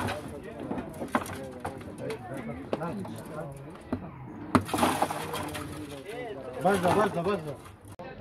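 Metal cans clatter inside a plastic barrel.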